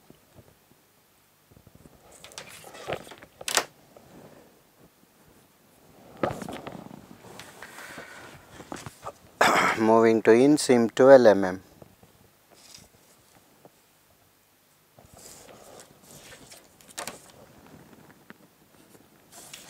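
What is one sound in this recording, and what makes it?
A pencil scratches along paper.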